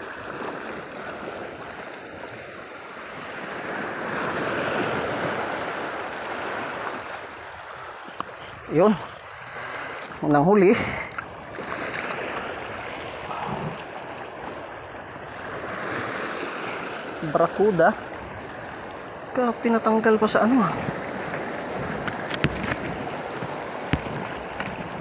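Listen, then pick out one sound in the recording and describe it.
Shallow sea water washes and splashes over rocks.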